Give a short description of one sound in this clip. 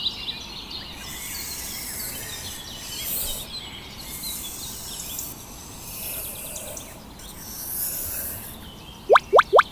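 A thin stick scrapes through sand.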